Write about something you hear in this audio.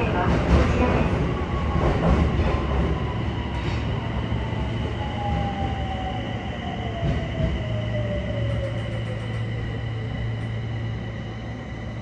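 An electric train motor whines and slowly falls in pitch as the train slows.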